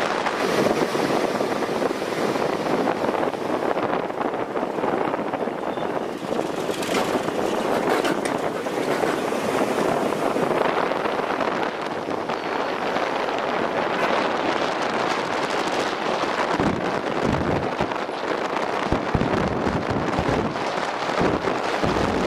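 Cars pass by.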